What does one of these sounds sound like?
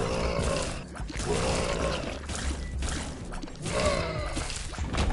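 Cartoonish shots pop and splat rapidly in a video game.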